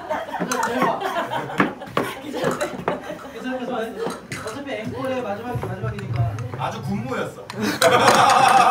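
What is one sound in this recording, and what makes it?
A woman laughs and talks with animation close by.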